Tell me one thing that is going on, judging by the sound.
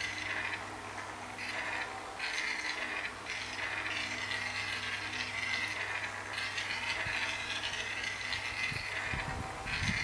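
Game sound effects chime from a small tablet speaker.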